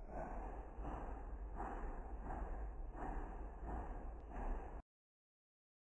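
A steam engine chuffs steadily along the track.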